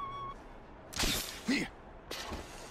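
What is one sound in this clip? A rope launcher fires with a sharp whoosh.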